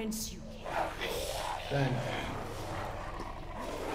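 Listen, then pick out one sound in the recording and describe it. A woman speaks firmly in a low voice.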